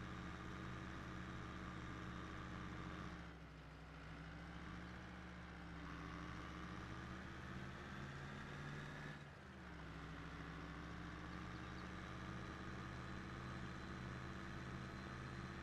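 A tractor engine drones steadily, its pitch dipping and rising as it slows and speeds up.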